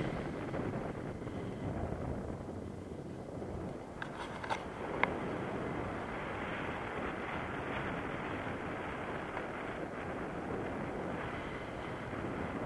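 Strong wind rushes and buffets steadily outdoors.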